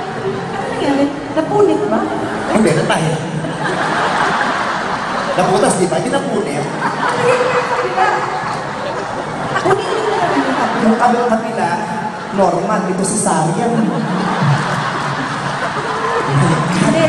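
Two women sing together into microphones over a loud sound system in a large echoing hall.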